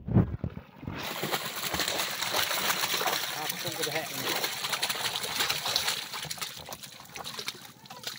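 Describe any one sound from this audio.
Fish splash and thrash into water.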